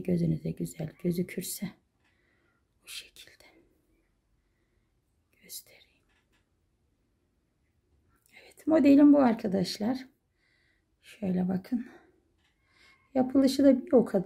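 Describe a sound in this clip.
Cloth rustles softly as hands handle it.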